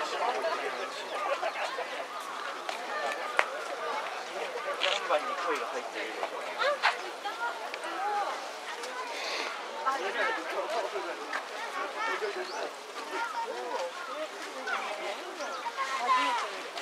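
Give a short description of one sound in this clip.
Water bubbles and splashes from a hose into a tub.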